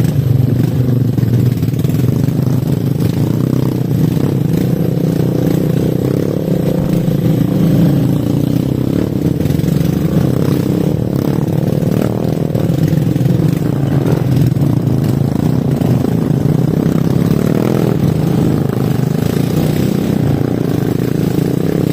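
A motorbike engine hums steadily close by.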